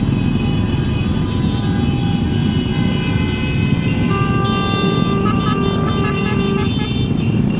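Wind buffets past, outdoors on the move.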